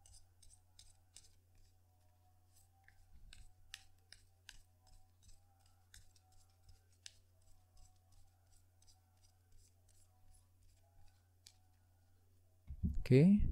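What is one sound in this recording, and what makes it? Playing cards are shuffled by hand with soft, quick flicks.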